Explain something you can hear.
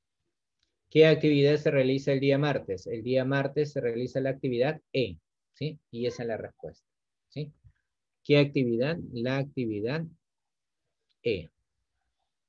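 A man speaks calmly and explains through a microphone on an online call.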